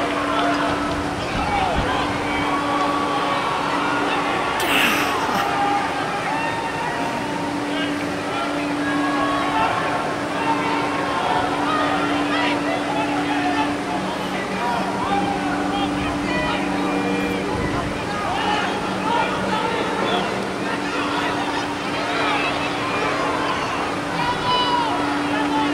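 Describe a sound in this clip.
A crowd of spectators chatters in an open-air stadium.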